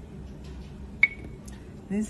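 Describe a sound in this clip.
A finger taps on a touchscreen.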